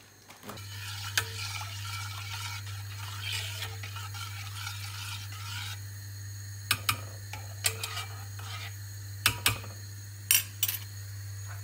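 A metal spoon clinks and scrapes against a pot.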